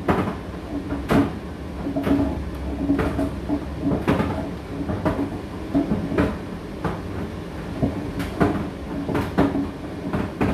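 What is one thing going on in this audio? Clothes thump and knock inside a tumble dryer's drum.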